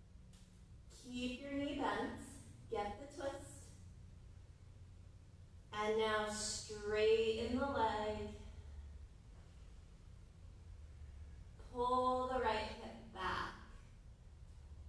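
A woman speaks calmly, instructing, in a room with a slight echo.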